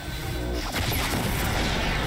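An energy blast bursts with a crackling boom.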